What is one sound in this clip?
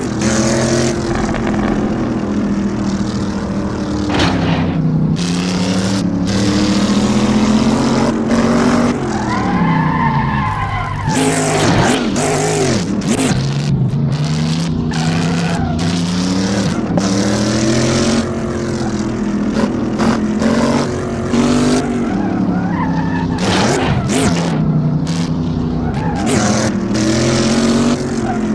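A racing car engine roars steadily, its pitch rising and falling as it changes gear.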